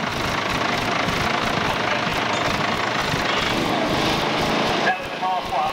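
A tractor engine chugs and putters loudly nearby.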